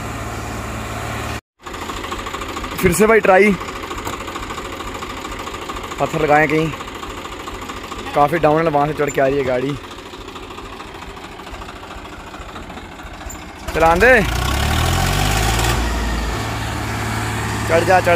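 A tractor engine chugs steadily nearby.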